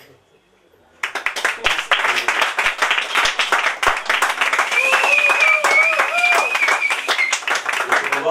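Hands clap loudly in a round of applause.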